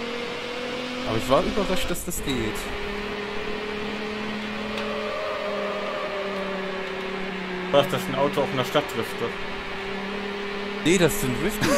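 A racing car engine hums steadily at high speed.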